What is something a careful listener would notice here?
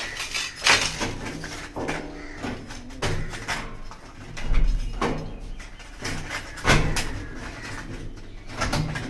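A metal door handle rattles and clicks as a hand works it.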